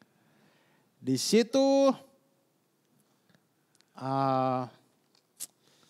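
Men speak with animation into microphones, heard close.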